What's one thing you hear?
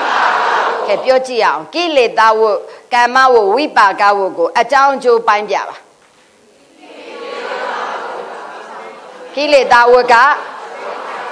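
A middle-aged woman speaks in a sing-song voice into a microphone.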